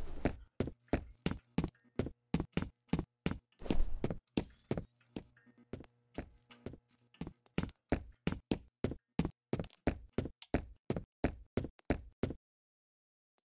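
Footsteps tap at an even pace on a hard floor.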